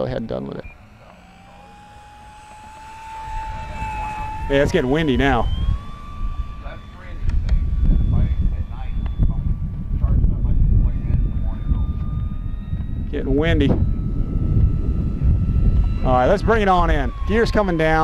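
A model plane's electric motor whines steadily overhead, rising slightly in pitch.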